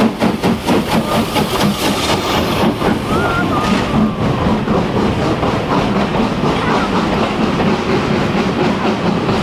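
Carriages rumble and clatter over the rails.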